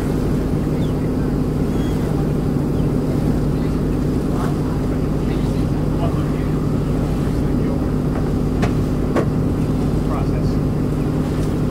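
Wind rushes and buffets steadily outdoors on open water.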